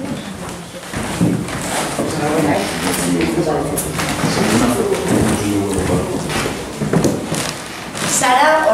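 Several adults chat together nearby in a room with a slight echo.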